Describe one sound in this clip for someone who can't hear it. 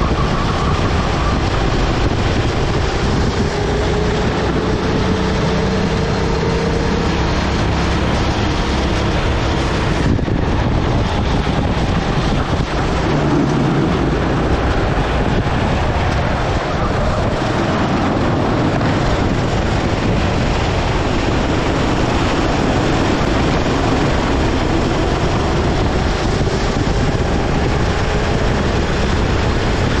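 A go-kart engine buzzes loudly close by, revving up and down.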